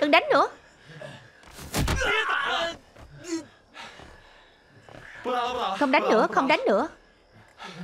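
A woman shouts in distress.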